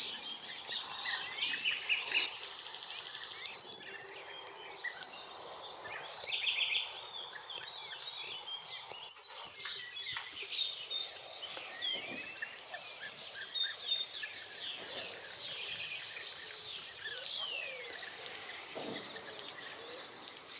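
Birds call with short, rolling, trilling chirps outdoors.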